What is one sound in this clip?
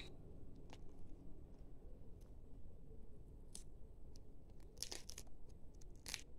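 Glass beads on a string clink and rustle softly as hands handle them.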